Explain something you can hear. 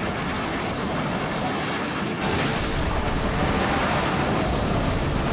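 Strong wind roars and howls.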